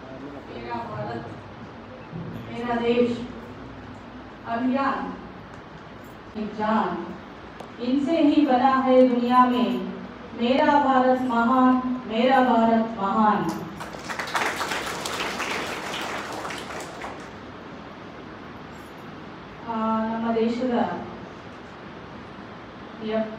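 A woman speaks through a microphone and loudspeakers in an echoing hall.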